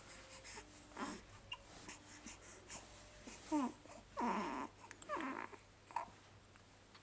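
A baby coos and gurgles.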